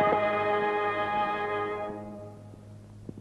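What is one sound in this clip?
A bowed string instrument plays a sustained note that fades away.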